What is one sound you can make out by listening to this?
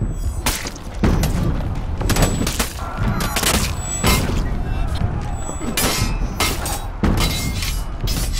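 Swords clash and clang in a fierce fight.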